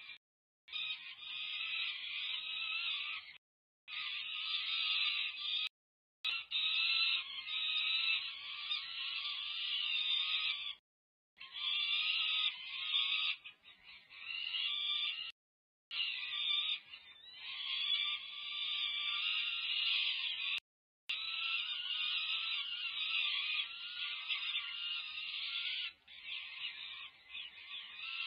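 Falcon chicks give loud, shrill begging screams, on and on with short breaks.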